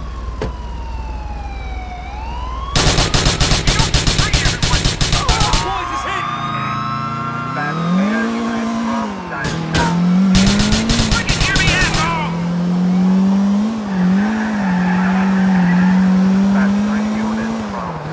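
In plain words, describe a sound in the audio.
A car engine roars as the car speeds along.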